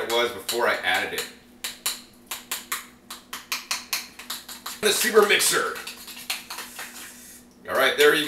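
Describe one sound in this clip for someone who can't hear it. A metal spoon scrapes and clicks against a bowl.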